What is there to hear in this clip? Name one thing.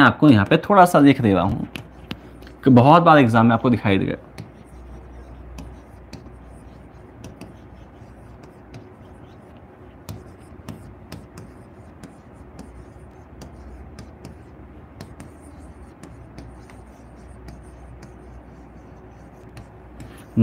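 A marker taps and scrapes on a board.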